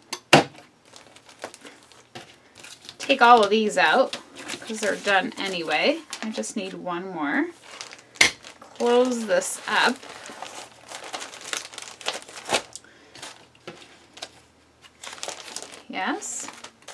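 Plastic sleeves rustle and crinkle as album pages are handled.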